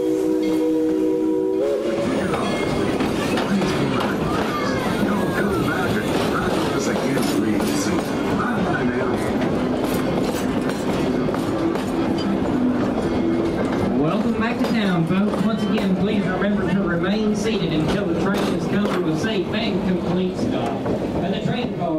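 Train cars rumble and clatter past close by on the rails.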